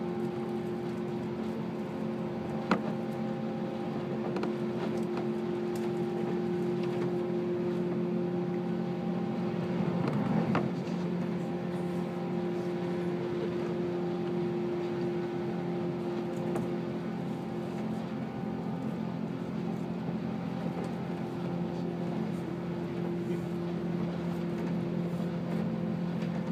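Train wheels rattle and clatter over rail joints.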